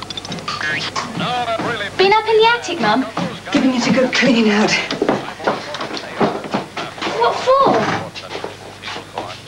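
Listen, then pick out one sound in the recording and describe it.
Children and a young woman talk excitedly over one another nearby.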